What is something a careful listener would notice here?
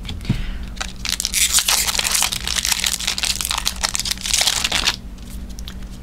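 Playing cards riffle and rustle as a deck is shuffled.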